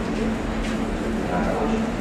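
A plastic bag rustles in a woman's hands.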